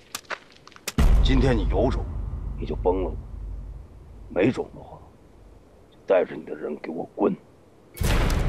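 A man speaks gruffly up close.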